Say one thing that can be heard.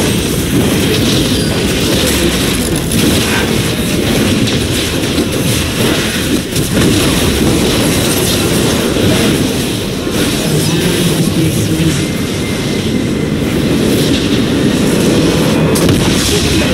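Magic blasts crackle and whoosh in a fast-paced battle.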